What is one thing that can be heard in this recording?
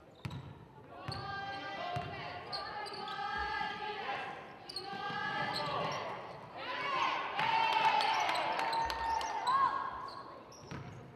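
Spectators shout and cheer loudly.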